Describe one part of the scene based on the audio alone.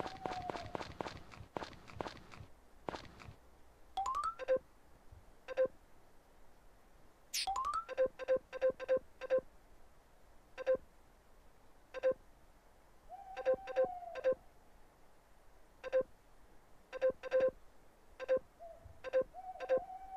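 Short electronic blips sound in quick bursts as game text pops up.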